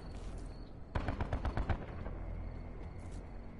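A rifle fires a quick burst of gunshots.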